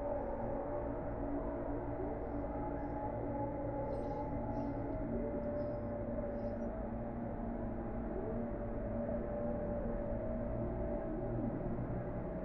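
Calm ambient music plays steadily.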